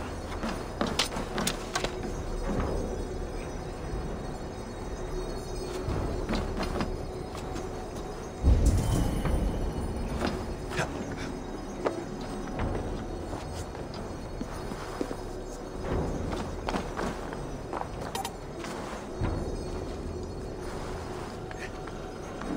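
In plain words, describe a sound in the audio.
Hands and feet thud and scrape against stone while climbing.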